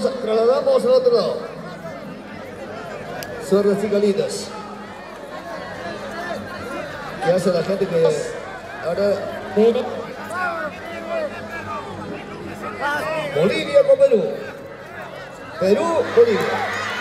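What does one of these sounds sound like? A large crowd talks and calls out outdoors.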